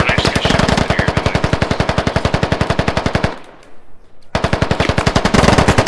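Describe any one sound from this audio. A rifle fires a fast, steady stream of shots, pauses briefly, then fires again.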